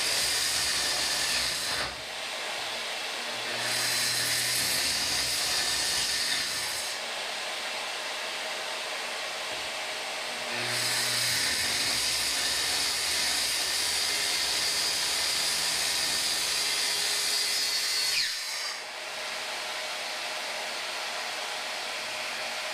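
A power sander whirs loudly against wood, its pitch rising and falling as it is pressed and eased.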